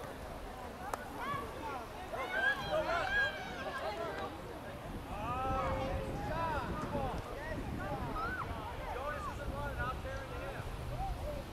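Young players shout and call out to each other across an open field, some distance away.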